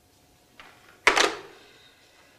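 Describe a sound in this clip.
A phone receiver is hung up with a clatter.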